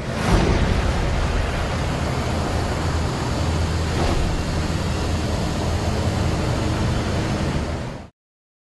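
A truck engine rumbles as the truck drives along a road.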